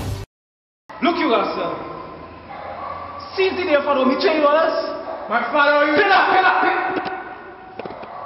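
A young man sings with animation.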